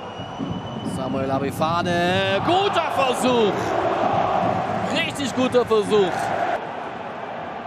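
A stadium crowd roars loudly as play nears the goal.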